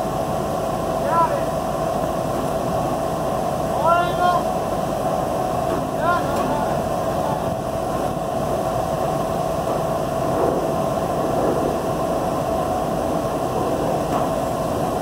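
A truck engine idles steadily in the distance.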